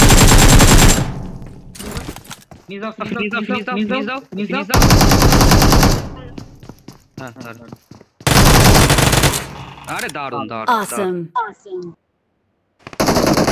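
Automatic gunfire rattles in loud, rapid bursts.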